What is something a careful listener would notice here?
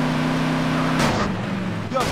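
A car thuds against a concrete wall.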